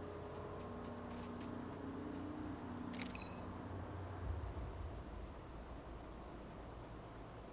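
A small drone hums as it hovers nearby.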